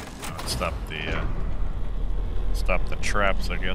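Heavy wooden doors creak and rumble open.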